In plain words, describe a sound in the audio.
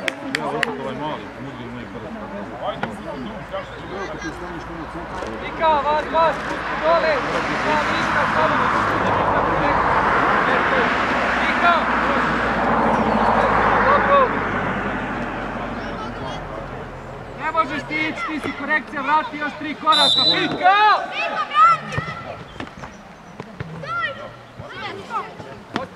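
Children shout and call out across an open field in the distance.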